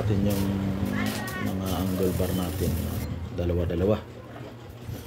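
An electric welder buzzes and crackles.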